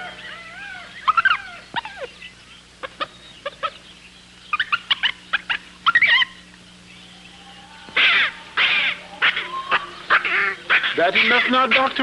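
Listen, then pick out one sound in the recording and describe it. A chimpanzee screeches and chatters excitedly.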